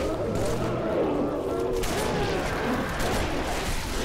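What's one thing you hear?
A grenade explodes nearby.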